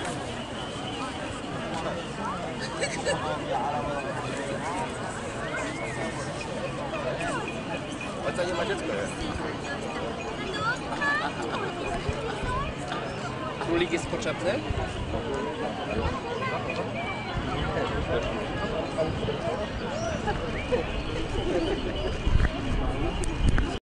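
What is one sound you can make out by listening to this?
A crowd of men and women chatters and murmurs outdoors.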